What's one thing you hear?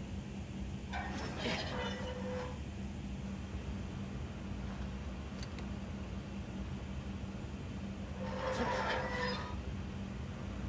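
A metal valve wheel squeaks and grinds as it turns.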